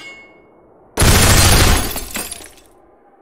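A gun fires a quick burst of loud shots.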